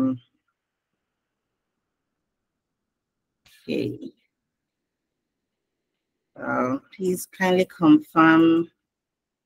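A young woman speaks calmly in short phrases over an online call.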